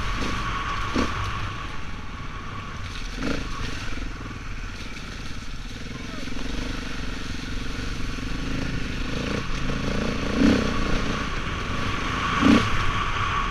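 Tyres bump and thud over rough, muddy ground.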